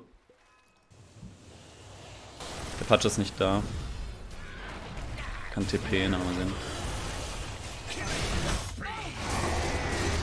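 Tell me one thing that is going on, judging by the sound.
Magic spells whoosh and crackle amid fighting.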